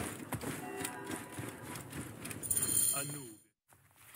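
Footsteps patter up stone steps.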